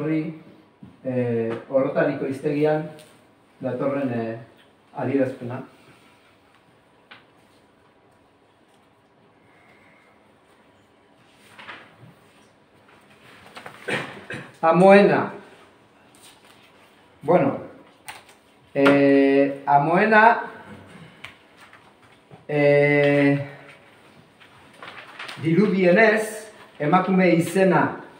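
A middle-aged man speaks calmly in short bursts, with pauses between phrases.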